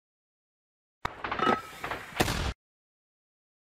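A mortar fires with a loud boom.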